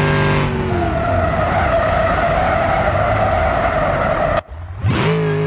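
Tyres screech in a long skid.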